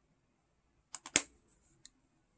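A small metal pan clicks into place on a magnetic palette.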